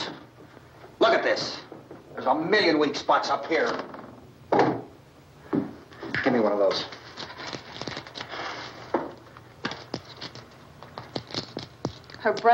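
A middle-aged man speaks firmly and sternly.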